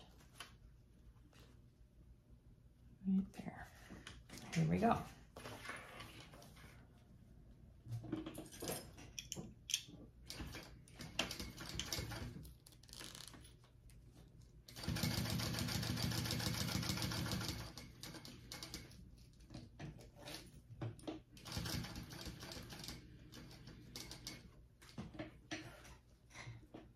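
Fabric rustles as hands smooth and shift it.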